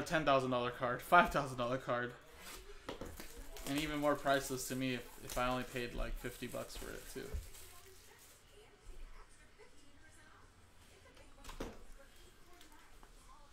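Cardboard packaging rustles and crinkles in hands.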